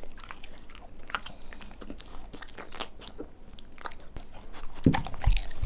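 A dog chews and smacks its lips wetly.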